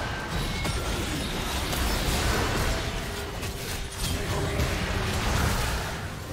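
Magic spells whoosh and blast in quick bursts.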